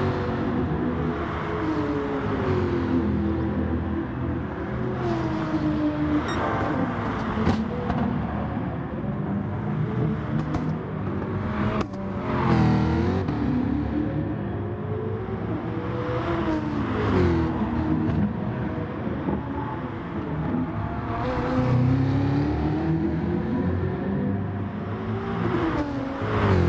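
A racing car engine roars and whines as it revs up and down through the gears.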